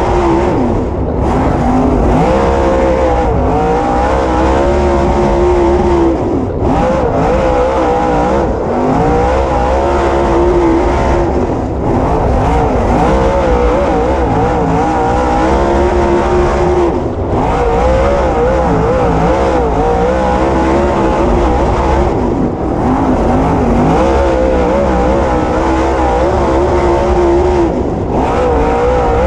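A race car engine roars loudly close by, revving up and easing off again and again.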